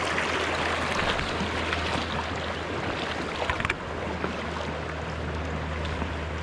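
A river flows and ripples over stones close by.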